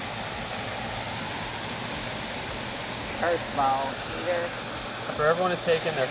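Water splashes steadily down a small waterfall nearby.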